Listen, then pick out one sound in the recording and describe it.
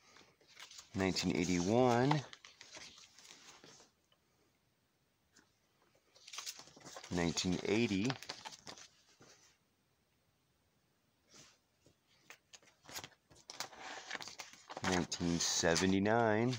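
Plastic binder pages rustle as they are turned.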